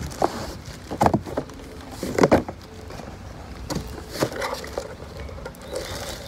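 A small cardboard box scrapes against cardboard as it is lifted out.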